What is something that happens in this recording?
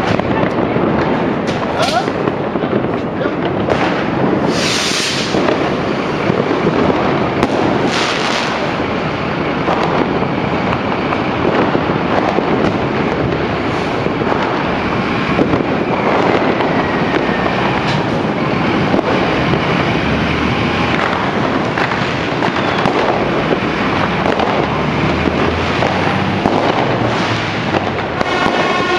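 A fire engine's diesel engine rumbles loudly as the truck pulls out.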